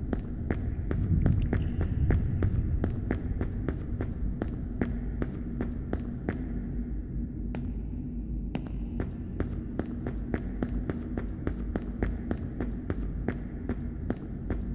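Footsteps crunch steadily on rocky ground.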